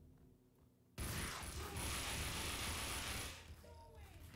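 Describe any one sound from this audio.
Automatic guns fire in rapid bursts.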